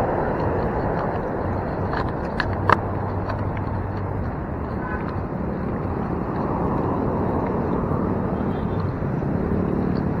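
Cars drive by on a road.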